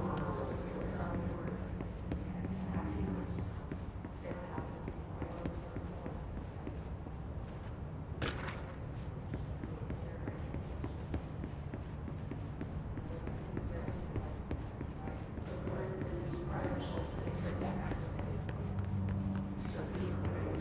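Footsteps tap steadily on a floor.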